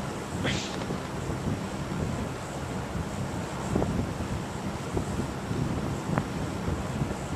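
A propeller aircraft engine drones.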